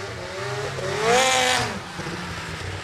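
A snowmobile engine roars as it speeds past close by.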